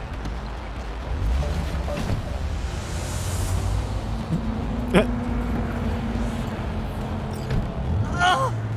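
A car engine rumbles as the car drives off.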